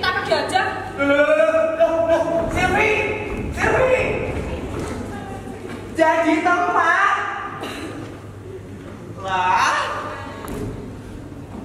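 A young man shouts with animation in an echoing hall.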